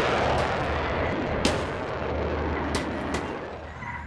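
A car crashes down and thuds onto the ground.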